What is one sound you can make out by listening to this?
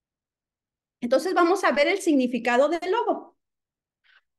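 A young woman speaks with animation into a microphone on an online call.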